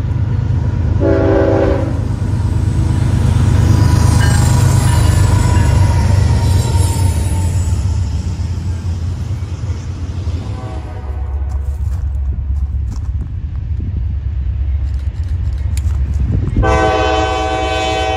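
A locomotive horn blares loudly several times.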